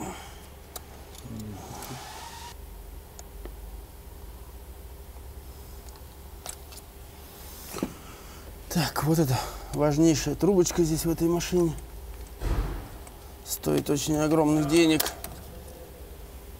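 Metal engine parts clink softly under gloved hands.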